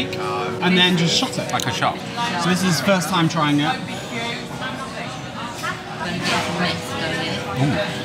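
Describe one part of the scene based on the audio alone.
A busy room murmurs with distant chatter.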